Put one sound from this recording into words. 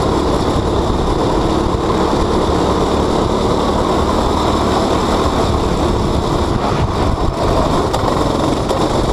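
Wind rushes hard past a helmet.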